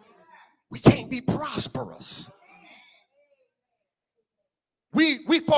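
A man preaches with animation into a microphone in an echoing hall.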